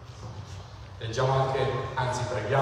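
A man speaks through a microphone over loudspeakers in a large echoing hall.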